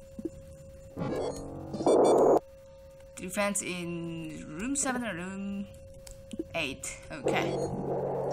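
Electronic game sound effects beep and whoosh.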